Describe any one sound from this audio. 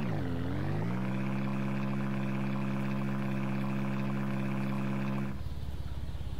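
A small utility vehicle's engine hums steadily as it drives.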